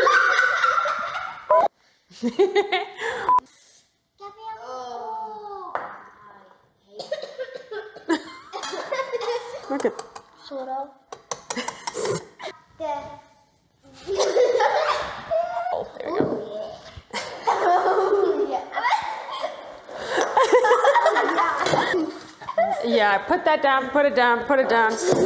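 Young children laugh and chatter excitedly.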